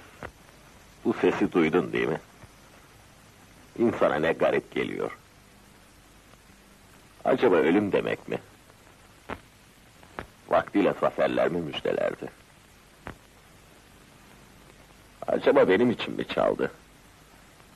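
A man speaks slowly in short phrases, with long pauses between them.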